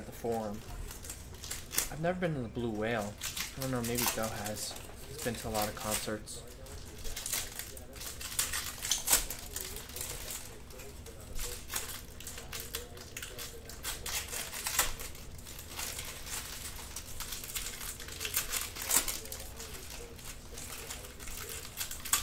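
Plastic card wrappers crinkle and rustle in hands.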